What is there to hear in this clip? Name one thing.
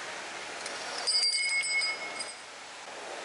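Metal parts scrape and clink as a heavy piece slides off a shaft.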